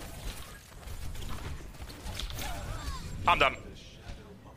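Rapid game gunshots crack in quick bursts.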